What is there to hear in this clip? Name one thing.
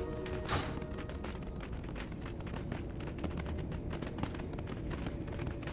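Heavy hooves thud steadily on dry ground.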